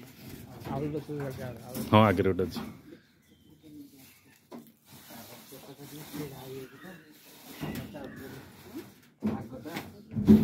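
Plastic sheeting rustles.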